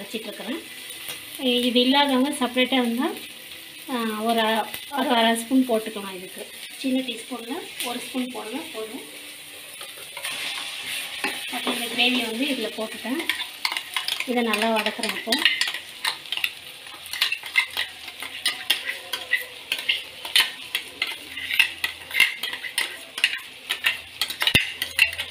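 A metal spoon scrapes and clinks against a pan.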